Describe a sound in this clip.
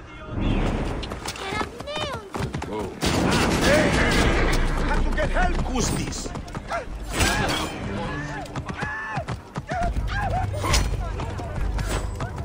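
A young man talks into a microphone with animation.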